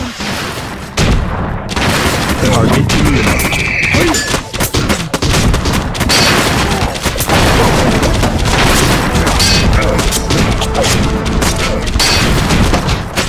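Swords clash and clang in a rapid fight.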